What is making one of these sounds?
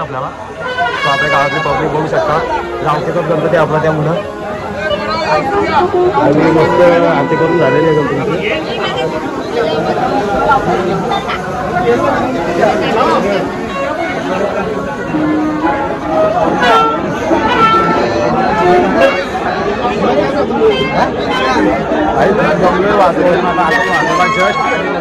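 A crowd of men talk and call out all around, close by.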